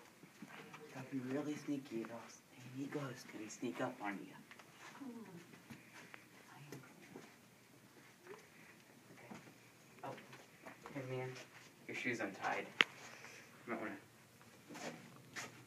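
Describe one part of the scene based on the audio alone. Footsteps shuffle softly on a carpeted floor.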